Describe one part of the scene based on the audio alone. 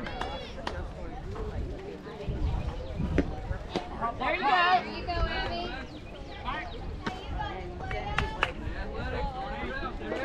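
Young players shout and call out across an open field.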